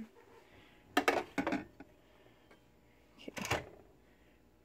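A mug knocks down onto a plastic tray.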